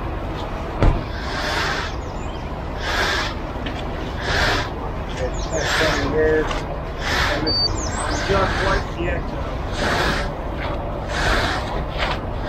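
Concrete is scraped and raked with rhythmic rasping strokes.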